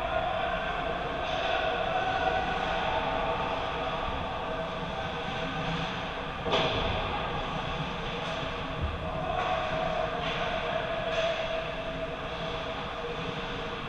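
Skates scrape and glide across ice in a large echoing hall.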